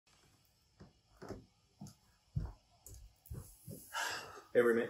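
Footsteps thump across a floor.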